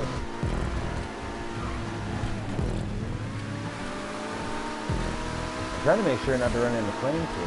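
A race car engine roars at high revs and drops in pitch with each gear shift.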